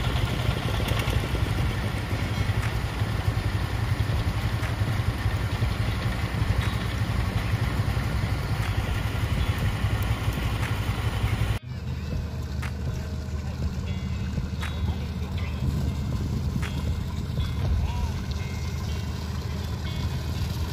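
A boat engine drones steadily close by.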